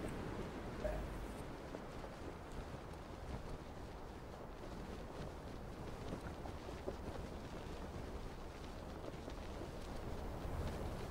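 Wind rushes steadily past a parachute as it glides down.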